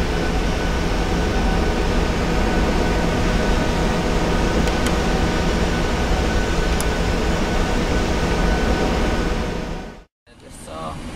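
Jet engines roar loudly and steadily close by.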